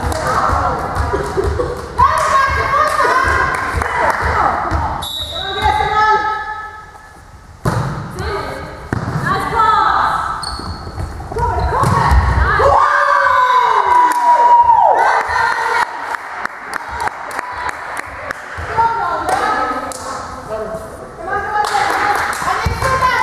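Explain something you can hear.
Young women shout and call out to each other in an echoing hall.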